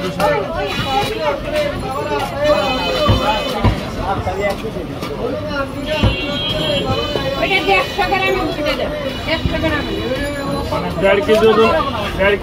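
Fish flesh is pressed and sliced against a sharp blade with soft wet thuds.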